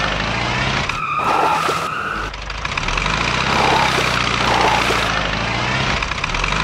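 A toy truck engine rumbles and whines.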